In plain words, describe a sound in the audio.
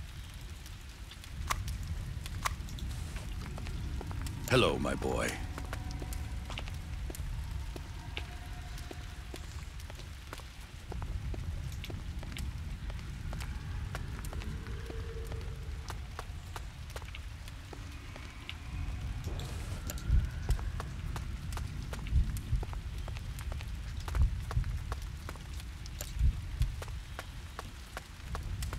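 A child's footsteps run across a stone floor.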